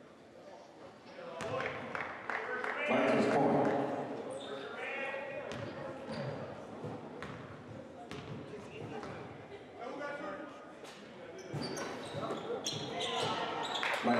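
Spectators in a large echoing gym talk and call out.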